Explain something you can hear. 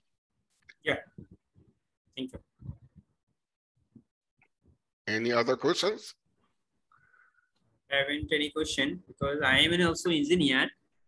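A man speaks with animation over an online call, in short bursts with pauses.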